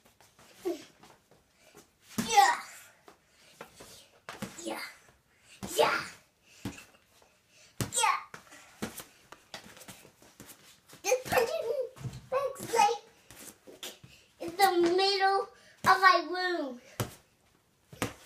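Boxing gloves thump against a punching bag.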